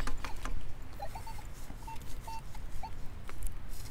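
A metal detector gives short, high beeps.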